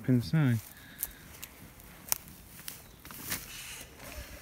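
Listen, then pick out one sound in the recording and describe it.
Footsteps crunch on dry twigs and leaves.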